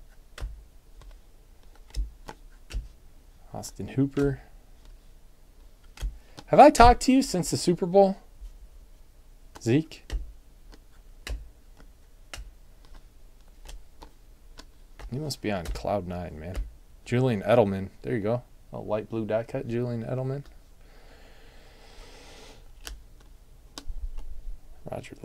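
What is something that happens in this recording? Trading cards slide and flick against each other as they are sorted by hand.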